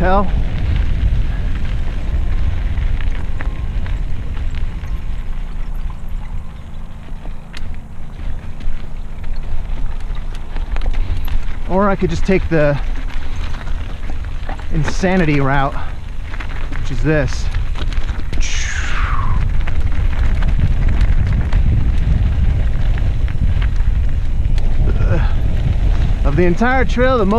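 Mountain bike tyres roll downhill over a dirt trail.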